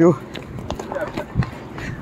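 Footsteps scuff on a path.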